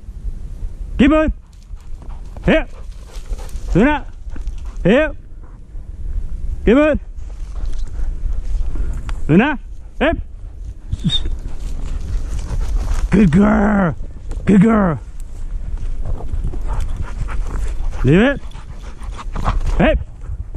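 A dog barks sharply again and again, close by.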